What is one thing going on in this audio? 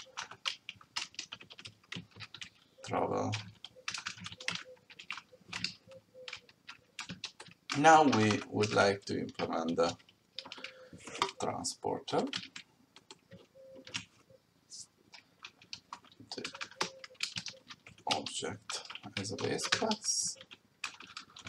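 Keys click on a keyboard.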